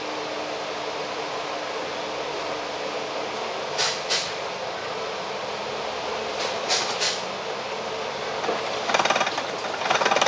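A tram rolls along its rails, rattling and clanking.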